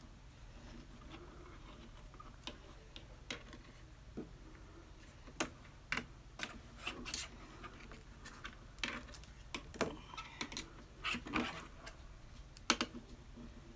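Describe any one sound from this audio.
Thin wire rustles and clicks softly as it is twisted by hand.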